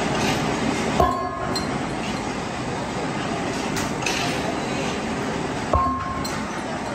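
A heavy steel part clanks sharply against metal and rings briefly.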